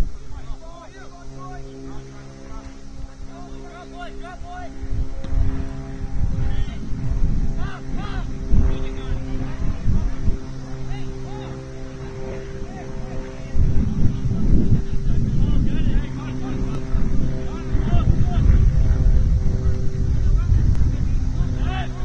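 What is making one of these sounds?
Players shout to each other far off across an open field.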